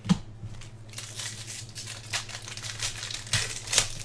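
A plastic wrapper crinkles and tears open.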